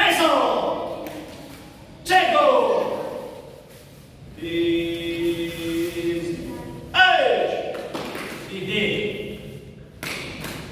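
Children shout sharply together in an echoing hall.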